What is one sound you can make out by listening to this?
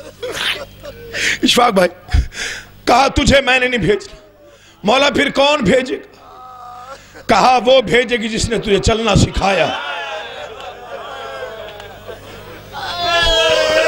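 A man speaks with passion into a microphone, heard through loudspeakers.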